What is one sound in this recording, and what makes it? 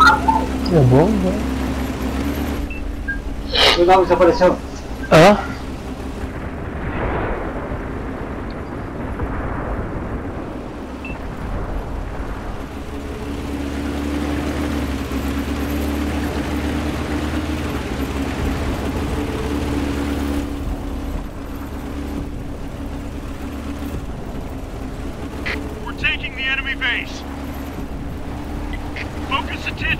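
A tank engine rumbles steadily as the tank rolls along.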